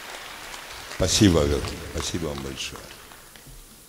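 An elderly man speaks into a microphone over loudspeakers in a large hall.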